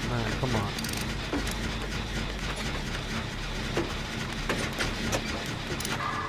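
Metal parts clank and rattle as a machine is worked on.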